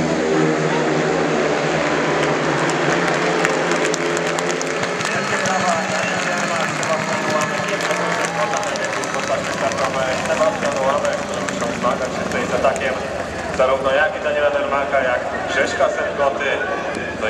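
Motorcycle engines roar around a dirt track.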